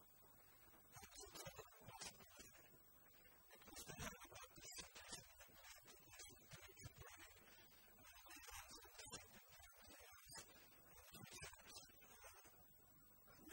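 A man speaks calmly into a microphone, heard over loudspeakers in an echoing hall.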